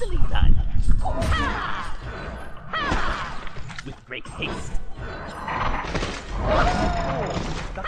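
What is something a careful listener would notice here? Game spells whoosh and crackle during a fight.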